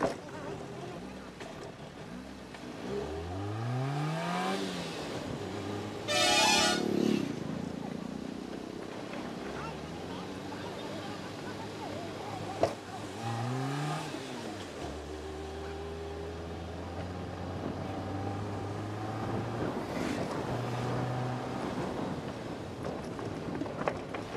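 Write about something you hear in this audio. A car engine hums and revs as the car climbs slowly.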